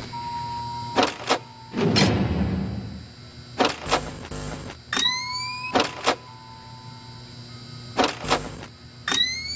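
Sharp clicks sound again and again.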